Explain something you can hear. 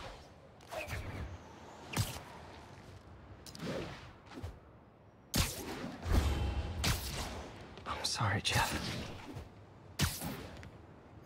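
Web lines snap and whoosh.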